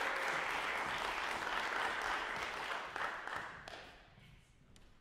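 A man claps his hands in an echoing hall.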